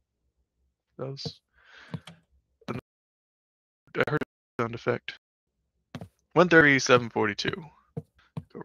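A man speaks with animation into a headset microphone, close by.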